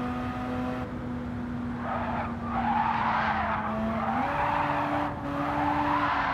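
A racing car engine drones steadily at high revs.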